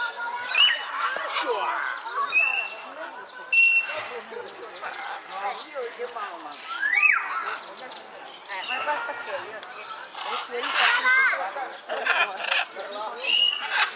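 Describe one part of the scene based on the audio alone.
Several adults chatter at a distance outdoors.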